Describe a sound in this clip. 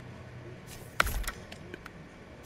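A heavy box thuds down onto a metal truck bed.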